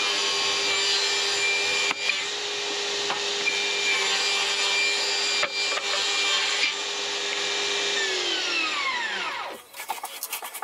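A table saw motor whirs steadily, then winds down.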